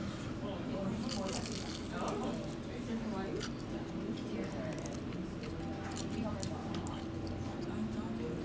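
A man crunches loudly on a crispy fried snack, close to the microphone.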